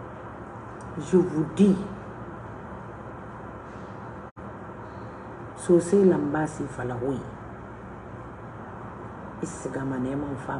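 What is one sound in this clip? A woman speaks emotionally close to a phone microphone, in short bursts with pauses.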